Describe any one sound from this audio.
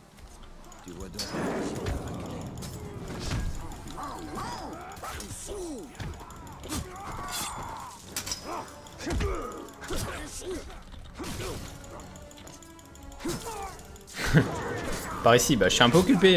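Swords clash and thud.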